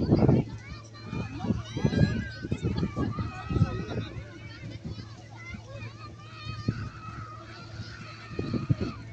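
A crowd of people chatters and shouts in the distance outdoors.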